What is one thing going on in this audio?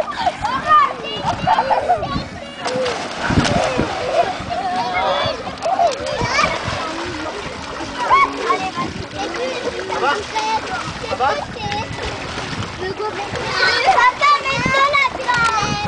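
Water splashes in a paddling pool.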